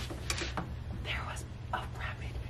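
A girl whispers softly close by.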